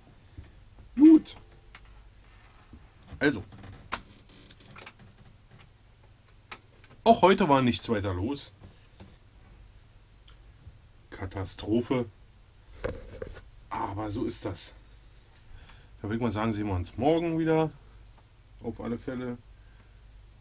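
A man speaks close by in short bursts, calmly.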